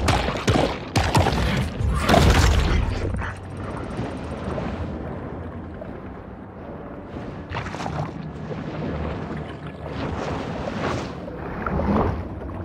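A muffled underwater rumble carries on throughout.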